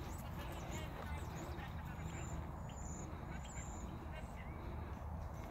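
A horse trots across soft dirt with dull hoofbeats.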